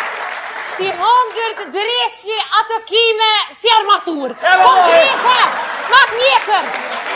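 A young woman shouts excitedly.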